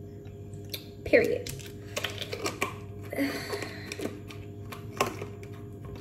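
A plastic bottle crinkles in a hand.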